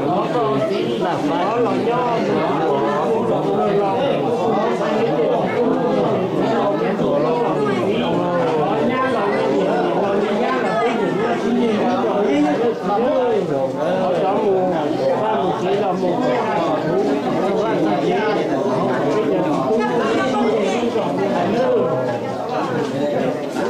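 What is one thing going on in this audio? A crowd of men and women chatter loudly close by.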